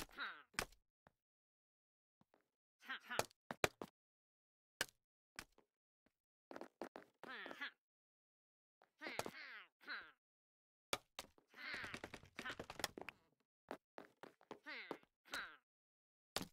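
Wooden blocks knock softly as they are placed, one after another.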